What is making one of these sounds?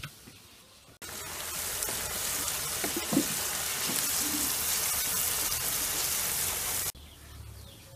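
Food sizzles loudly in a pot.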